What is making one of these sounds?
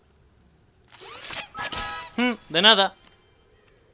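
A gift box bursts open with a bright, sparkling chime.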